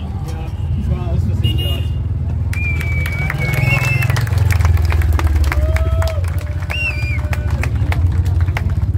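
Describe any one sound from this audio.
A motorcycle engine roars and revs loudly close by.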